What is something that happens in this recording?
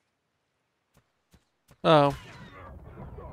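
A fist thuds against a creature.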